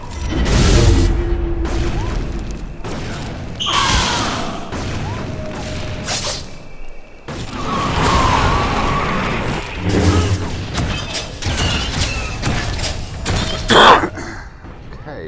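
Blaster shots and laser swords crackle and clash in a game battle.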